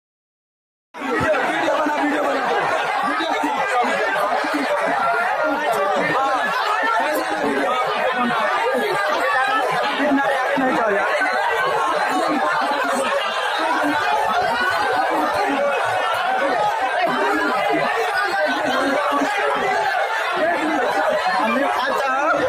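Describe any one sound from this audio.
A large crowd shouts and clamours excitedly outdoors.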